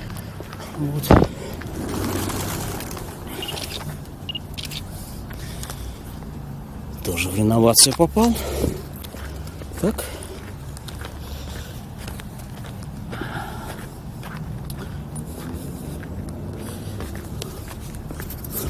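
Footsteps crunch and splash through wet slush.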